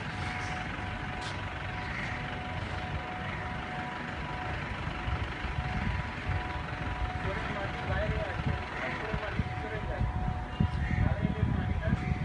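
Men talk quietly at a distance outdoors.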